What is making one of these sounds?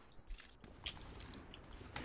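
A gun fires rapid energy shots.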